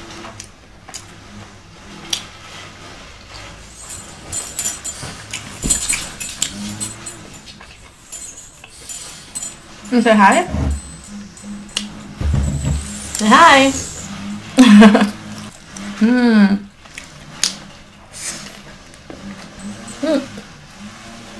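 A young woman chews food with crunchy, wet mouth sounds close to a microphone.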